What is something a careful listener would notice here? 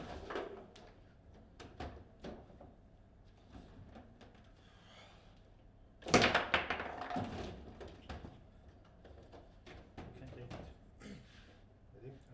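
A foosball ball is struck by plastic figures and clacks against the table walls.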